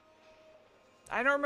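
A young woman speaks close to a microphone.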